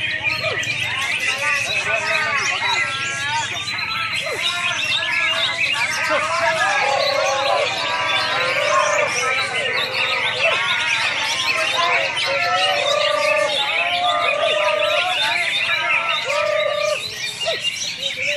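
Many caged songbirds chirp and trill loudly all around.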